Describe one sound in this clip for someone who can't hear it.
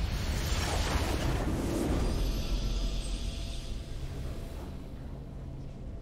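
A triumphant victory fanfare swells.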